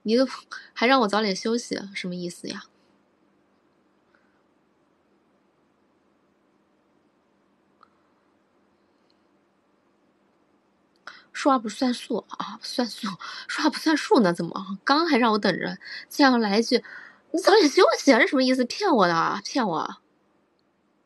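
A young woman talks close to the microphone with animation.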